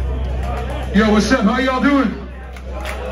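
A man shouts loudly into a microphone over loudspeakers.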